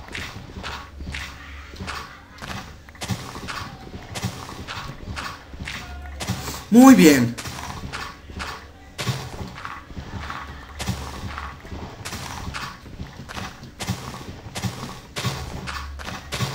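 A pickaxe digs into dirt blocks with quick repeated crunches.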